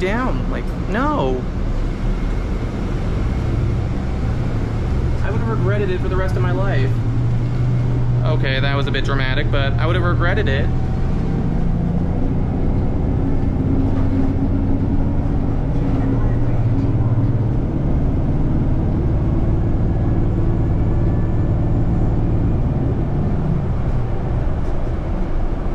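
A bus engine hums low and steady as the bus drives along.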